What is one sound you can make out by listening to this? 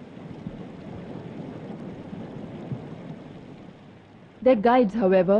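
Water trickles over rocks in a stream.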